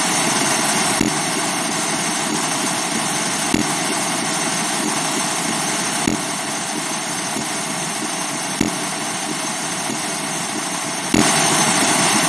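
Feet splash repeatedly in a muddy puddle.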